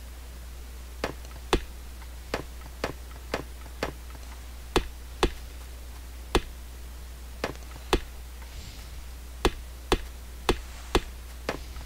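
Sharp chopping knocks ring out at a steady pace as trees are cut.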